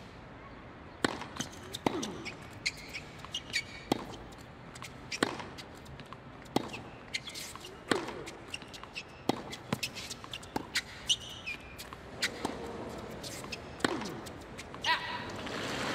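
Rackets hit a tennis ball back and forth with sharp pops.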